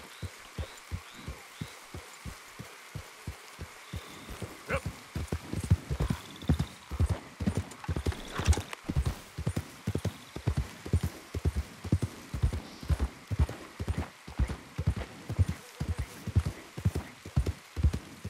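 Horse hooves thud steadily on soft ground, growing heavier and faster.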